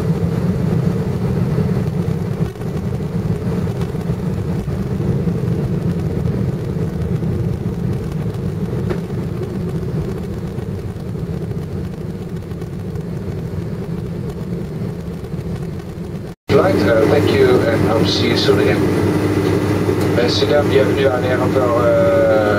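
A jet engine rumbles steadily, heard from inside an aircraft cabin.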